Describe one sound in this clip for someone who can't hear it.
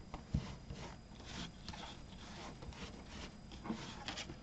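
A cloth rubs softly over a rubber stamp.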